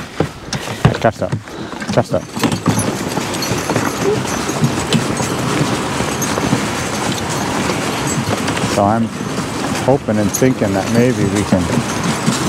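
Horse hooves thud softly on packed snow.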